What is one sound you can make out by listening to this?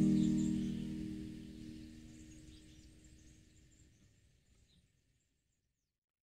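An acoustic guitar chord rings out and slowly fades away.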